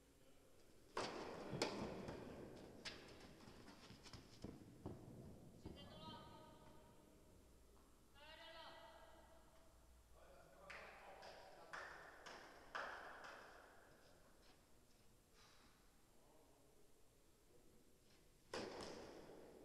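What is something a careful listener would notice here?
A tennis ball is struck with a racket, echoing in a large hall.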